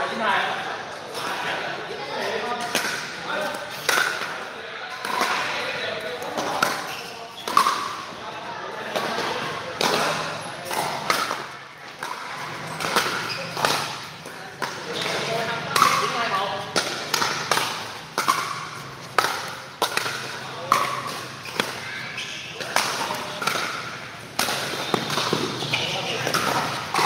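Paddles hit a plastic ball with sharp, echoing pops.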